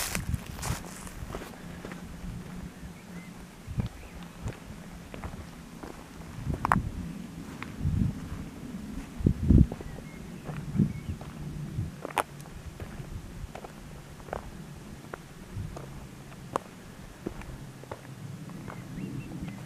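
Footsteps crunch on a gravel path outdoors.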